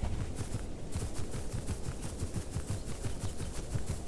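Leaves rustle as a large lizard pushes through dense plants.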